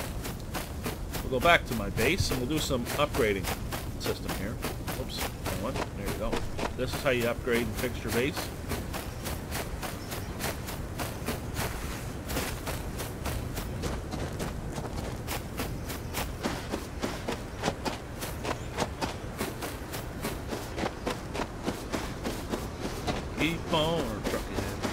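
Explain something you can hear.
Footsteps crunch steadily over dirt and sand.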